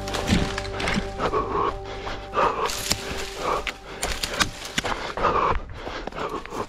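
Footsteps crunch quickly over dry ground and leaves.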